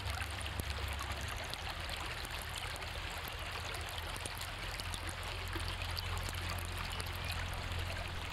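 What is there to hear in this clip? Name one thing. Water ripples and gurgles over stones in a shallow stream.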